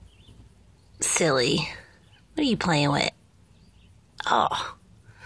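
A kitten meows loudly, again and again, close by.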